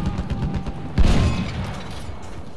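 A large explosion booms close by.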